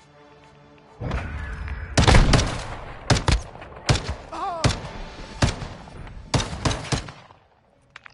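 Gunshots fire in quick, loud bursts.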